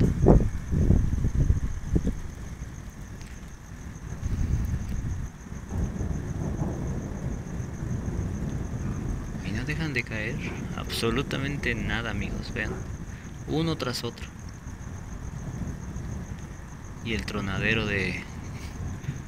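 Thunder rumbles low and long in the distance.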